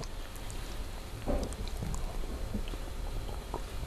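A middle-aged man drinks from a glass.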